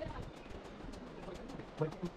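Footsteps tap on a stone walkway.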